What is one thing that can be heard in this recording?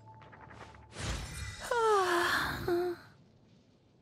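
A bright, shimmering game chime rings out with a rising swoosh.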